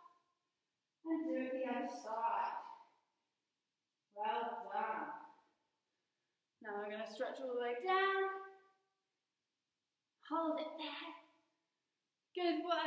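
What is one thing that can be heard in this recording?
A woman speaks calmly in short phrases with pauses, giving instructions close by.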